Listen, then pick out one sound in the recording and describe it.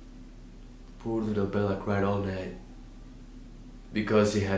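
A young man speaks calmly and earnestly, close to the microphone.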